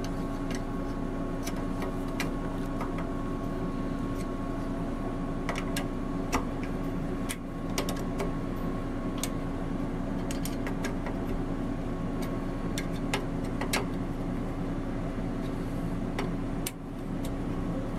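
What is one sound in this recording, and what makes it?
Metal tools clink and tap against metal.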